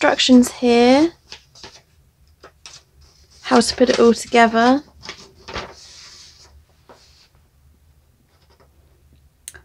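Paper rustles and crinkles as a sheet is handled.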